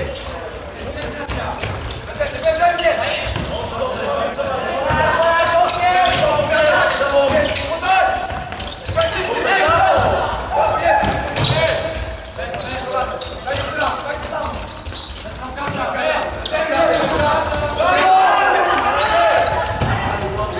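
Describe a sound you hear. Young men shout to each other in a large echoing hall.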